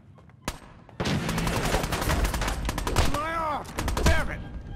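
Fists thud in a brawl.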